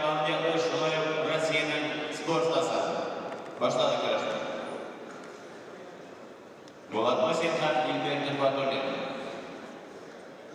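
A man speaks loudly in a large echoing hall.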